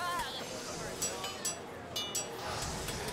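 A hammer strikes metal on an anvil with ringing clangs.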